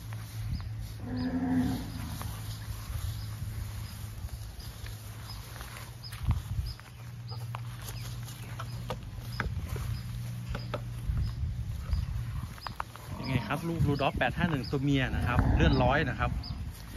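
A calf bleats loudly nearby.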